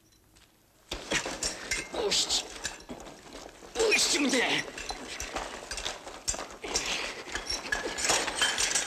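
Two people scuffle and thrash about on rough ground.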